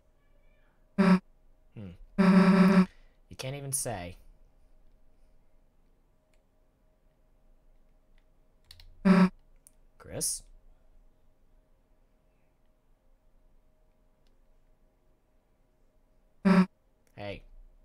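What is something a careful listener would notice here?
Dialogue text blips chirp in short bursts from a video game.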